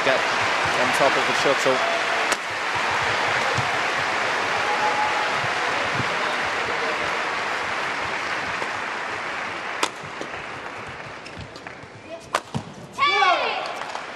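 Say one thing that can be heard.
A shuttlecock is struck sharply by rackets back and forth.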